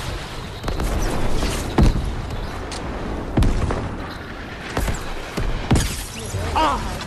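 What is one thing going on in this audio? Rocket blasts fire and explode with loud booms.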